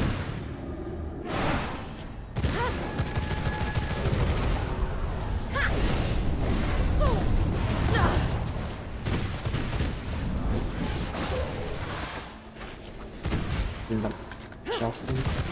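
Magic blasts and impacts clash in a fast fight.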